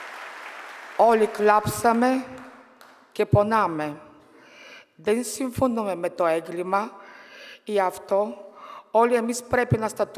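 A woman speaks into a microphone over loudspeakers, with echo in a large hall.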